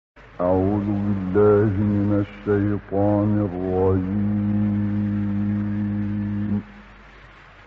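A man chants in a long, drawn-out, melodic voice through an old recording with a steady hiss.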